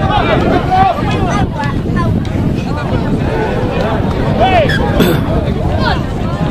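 Young men shout calls to each other across an open playing field.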